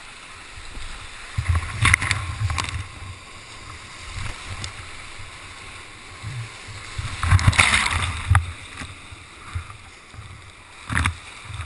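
A kayak paddle splashes through rough water.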